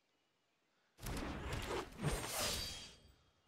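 A game card slams down with a loud magical whoosh.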